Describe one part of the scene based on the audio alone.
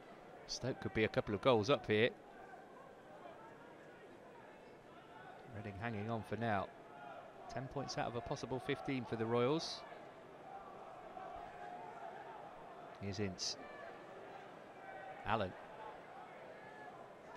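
A crowd murmurs softly in a large open stadium.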